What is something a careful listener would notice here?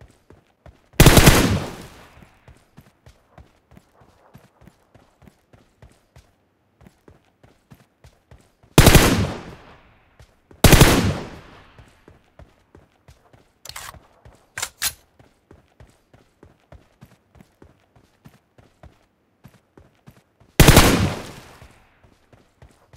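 A rifle fires short bursts that echo and fade.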